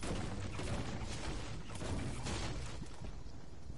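A pickaxe strikes wood with sharp thuds.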